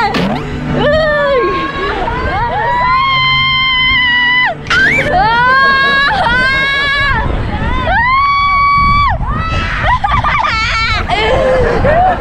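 A young woman laughs and shrieks loudly close by.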